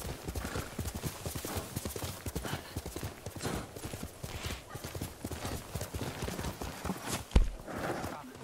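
Horse hooves gallop quickly over grass.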